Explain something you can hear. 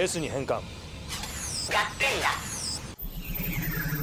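A small robot chirps with quick, warbling electronic beeps.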